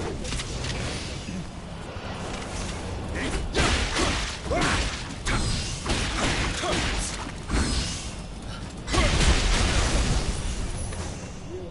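Blades slash and strike with sharp, heavy impacts.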